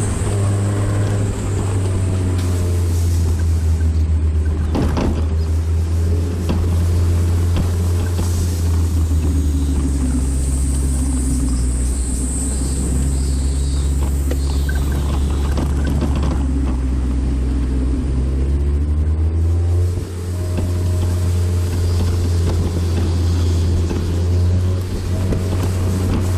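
A car engine hums loudly and steadily, rising and falling in pitch as it changes speed.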